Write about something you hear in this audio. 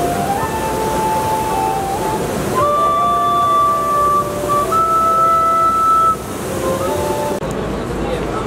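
Pan flutes play a lively melody outdoors.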